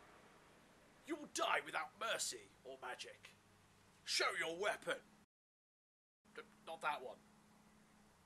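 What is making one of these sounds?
A young man speaks loudly and with animation, close by.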